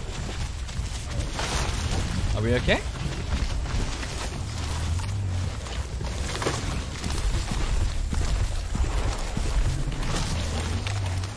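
A large creature tears and chews at meat.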